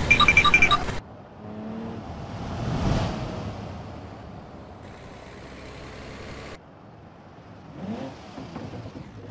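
A car engine hums as a car drives along a road.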